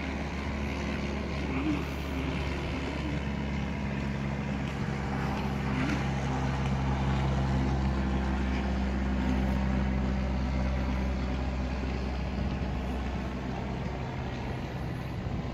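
A small propeller plane drones steadily overhead.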